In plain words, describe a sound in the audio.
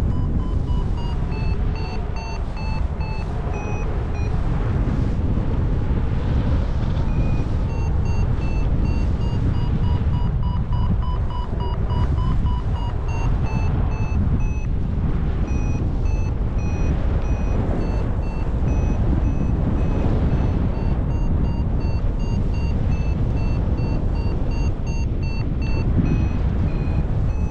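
Strong wind roars steadily past the microphone.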